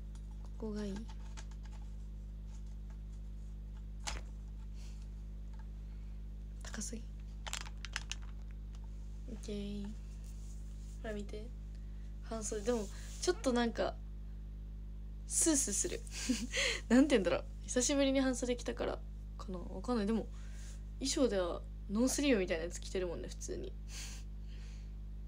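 A young woman speaks softly and casually, close to a microphone, with pauses.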